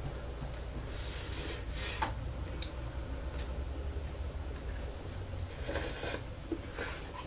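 Noodles are slurped loudly.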